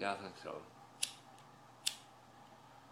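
A lighter clicks sharply.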